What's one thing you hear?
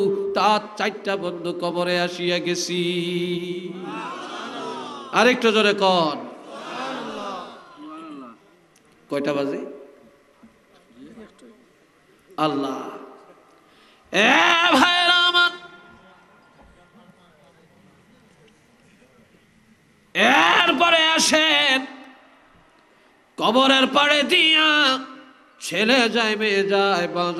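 An elderly man preaches passionately into a microphone, chanting and shouting in long bursts through a loudspeaker with echo.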